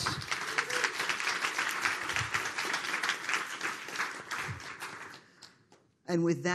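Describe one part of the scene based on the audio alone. An audience applauds in a large hall and the applause fades away.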